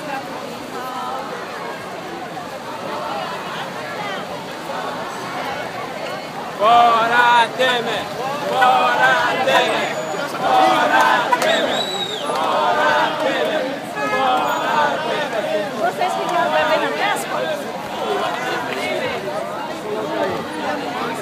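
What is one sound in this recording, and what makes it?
A crowd of marching people sings and chants loudly outdoors.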